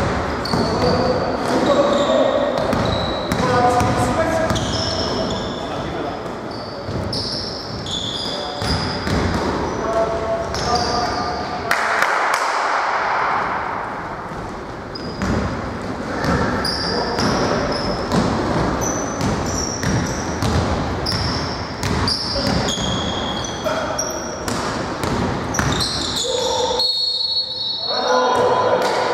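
Young men call out and shout across a large echoing hall.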